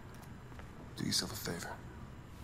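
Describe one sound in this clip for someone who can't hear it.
A young man speaks quietly and firmly, close by.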